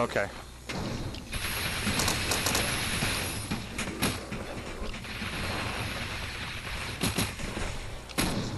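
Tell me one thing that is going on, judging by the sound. An energy gun fires rapid blasts.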